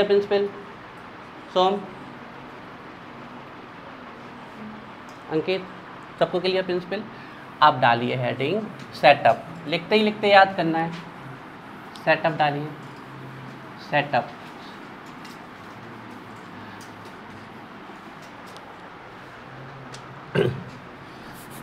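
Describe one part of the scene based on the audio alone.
A young man speaks calmly and explains, close by.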